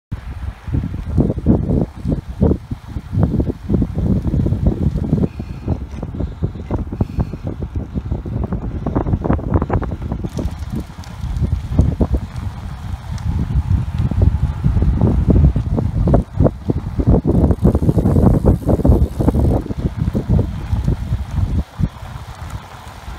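Wind rushes loudly past, buffeting the microphone.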